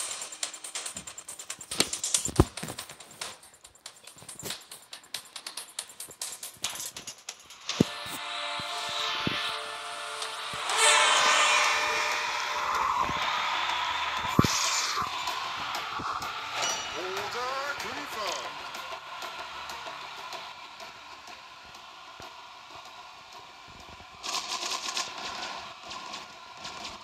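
Upbeat electronic game music plays.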